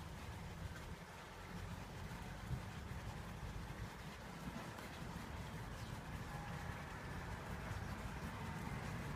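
A brush scrapes and dabs against a canvas.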